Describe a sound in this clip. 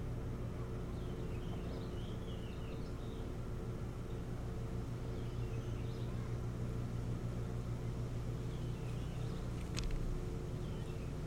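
An osprey gives soft, high chirps now and then.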